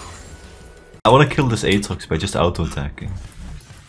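A young man talks loudly and with animation into a close microphone.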